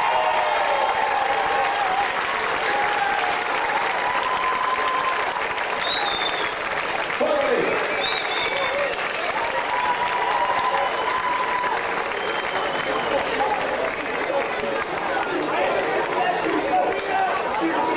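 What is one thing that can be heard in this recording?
A brass band plays a lively tune outdoors.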